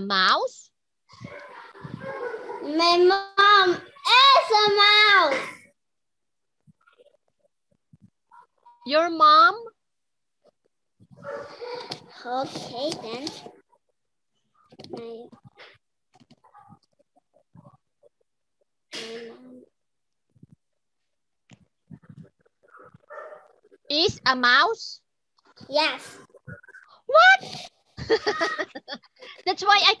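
A young girl speaks over an online call.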